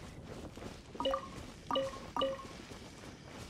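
Short bright chimes ring out three times in quick succession.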